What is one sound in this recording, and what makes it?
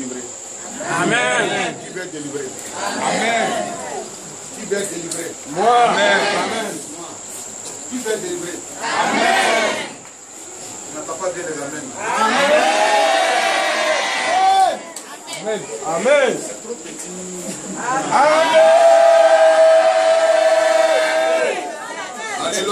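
A crowd chants and sings loudly together.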